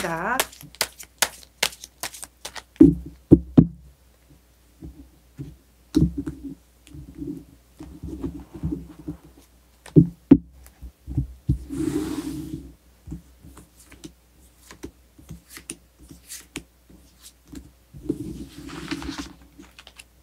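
Cards shuffle and riffle with soft clicks.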